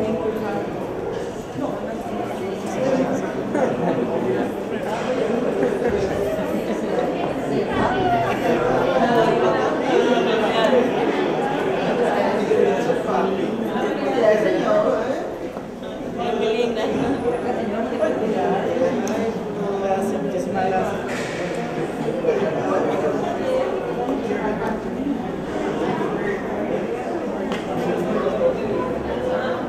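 A crowd of men and women chatter all around in an echoing room.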